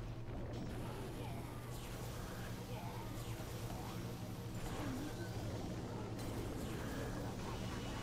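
Electric bolts zap and crackle in quick bursts.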